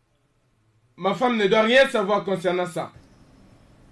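A man speaks sharply and with annoyance, close by.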